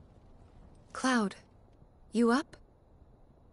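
A young woman calls out softly.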